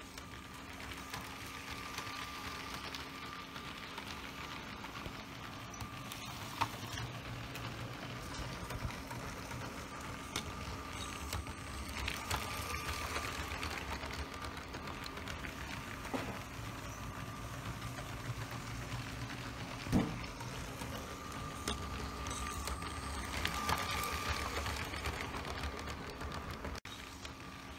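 A toy train rumbles and clatters along plastic tracks, passing close by.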